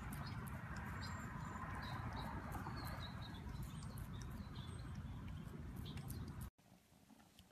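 A cat chews a strawberry with wet smacking sounds.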